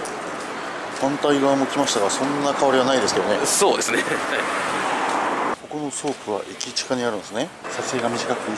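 A young man talks cheerfully close by.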